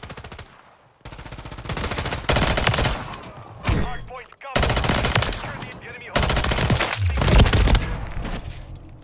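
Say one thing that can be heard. Rapid gunshots crack in loud bursts.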